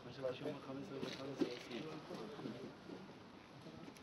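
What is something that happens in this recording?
Men talk nearby outdoors.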